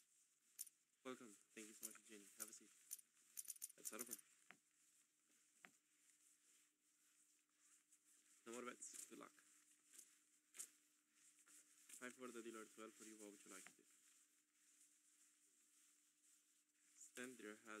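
A young man speaks calmly through a microphone.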